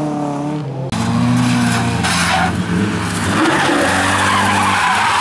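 A second rally car engine roars and revs nearby.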